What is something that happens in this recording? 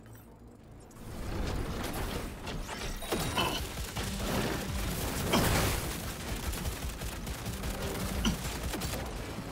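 Pistol shots fire rapidly with loud bangs.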